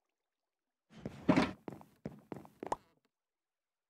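Footsteps thud on hard blocks in a game.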